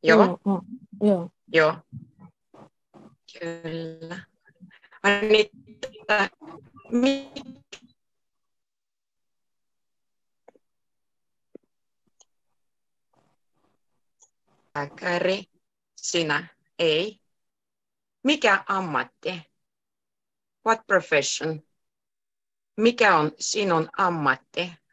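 A woman speaks calmly and clearly through a headset microphone on an online call, pausing now and then.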